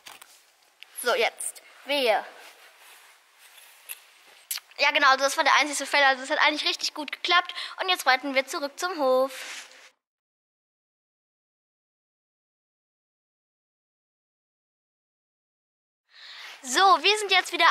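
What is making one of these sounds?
A girl talks with animation close to the microphone.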